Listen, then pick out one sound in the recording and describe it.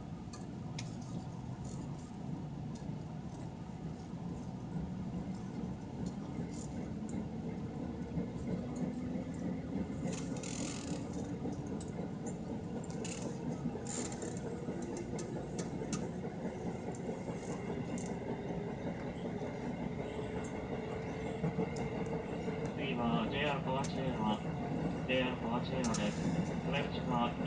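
A train's wheels click over rail joints.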